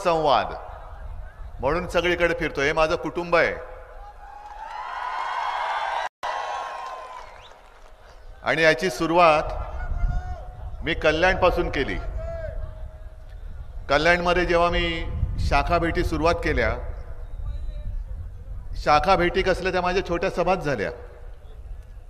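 A middle-aged man speaks forcefully into a microphone over loudspeakers.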